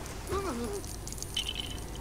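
Small plastic pieces scatter and jingle as game coins are collected.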